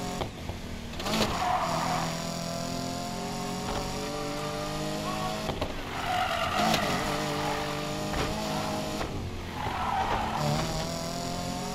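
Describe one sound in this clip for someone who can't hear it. Car tyres screech while sliding through turns.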